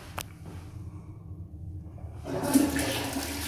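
A hand presses a toilet flush button with a click.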